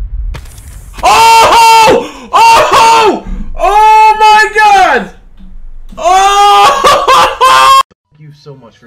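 A man shouts loudly and with excitement into a microphone.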